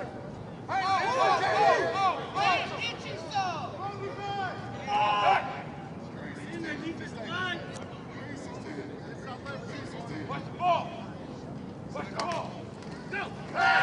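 Young men shout and cheer loudly nearby, outdoors.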